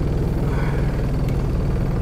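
An elderly man speaks briefly.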